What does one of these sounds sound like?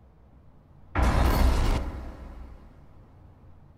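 A loud, harsh scream blares suddenly and then fades.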